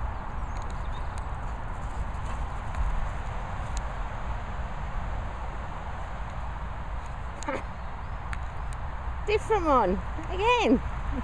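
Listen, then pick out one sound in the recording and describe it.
A dog's paws patter softly across grass.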